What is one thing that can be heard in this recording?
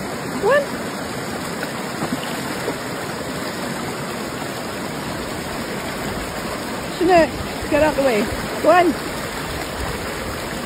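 A shallow stream rushes and splashes over rocks.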